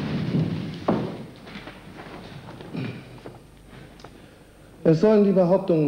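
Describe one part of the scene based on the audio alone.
A middle-aged man reads out in a firm voice.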